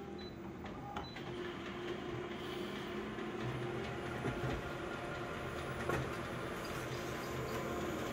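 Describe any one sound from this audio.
A copier whirs steadily as it prints.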